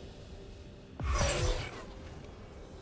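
Video game spell effects whoosh and crackle in a sudden burst.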